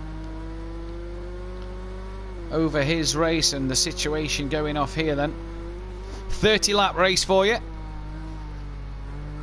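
A racing car engine hums steadily at high revs.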